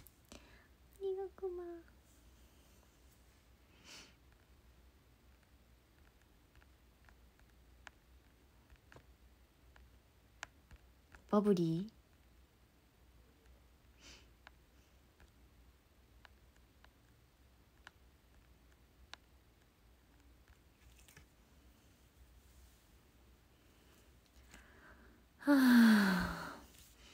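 A young woman speaks briefly and softly, close to a phone microphone, with long pauses between her words.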